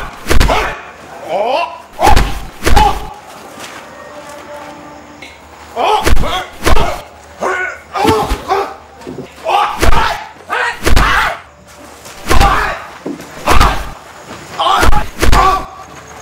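A woman shouts and grunts while fighting.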